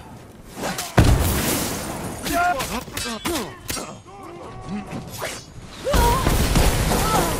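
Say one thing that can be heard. A bomb explodes with a loud, heavy boom.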